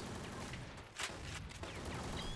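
A rifle magazine clicks into place.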